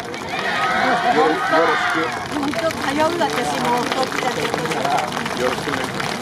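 A group of dancers shout and chant together in unison.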